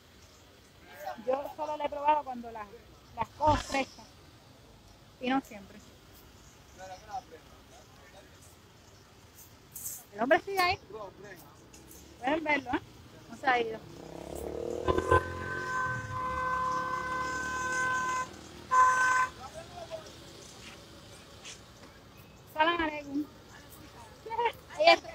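A woman talks close to a phone microphone in short bursts.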